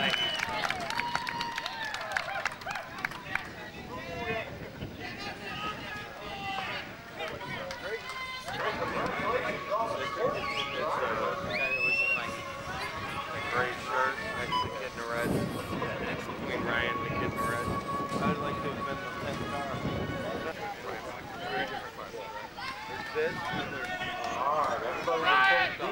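Men talk nearby in an outdoor crowd.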